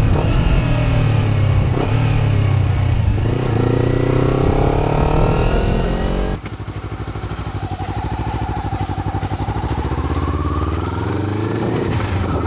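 A motorcycle engine drones and revs up and down close by.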